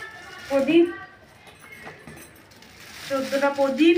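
A plastic bag rustles in a young woman's hands.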